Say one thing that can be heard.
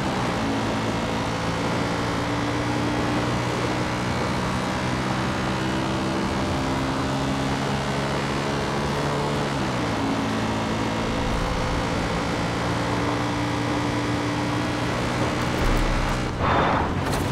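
A quad bike engine hums steadily, dipping in pitch briefly as it shifts.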